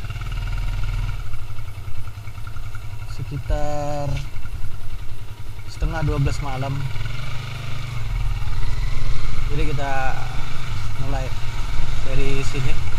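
A motorbike engine rumbles steadily at low speed.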